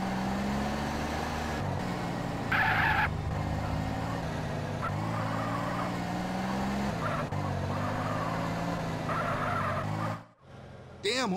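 A car engine hums and revs steadily as the car drives along.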